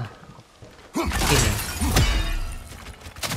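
A metal weapon strikes hard with a loud clash and crackle.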